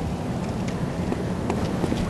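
Footsteps run across cobblestones.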